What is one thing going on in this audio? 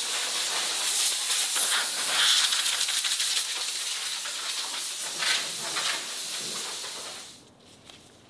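A power sander grinds harshly against metal.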